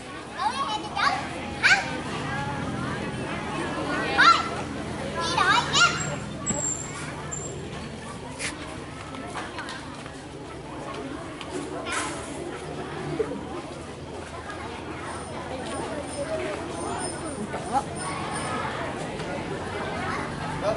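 A crowd of children chatters and calls out outdoors.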